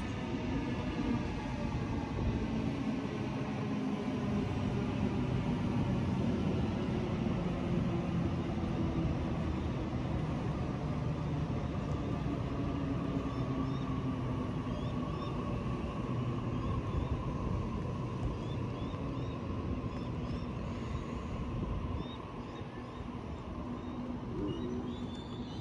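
An electric train rumbles and hums steadily as it pulls slowly through the station.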